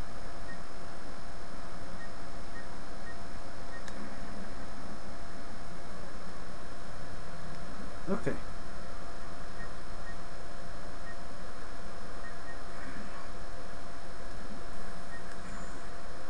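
Soft game menu clicks tick as a cursor moves between items.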